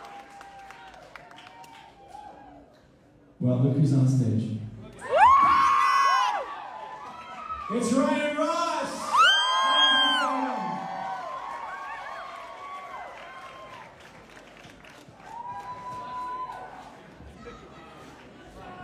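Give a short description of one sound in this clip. A man sings into a microphone.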